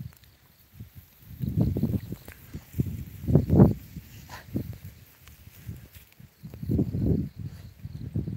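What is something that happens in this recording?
A dog's paws rustle through dry grass close by.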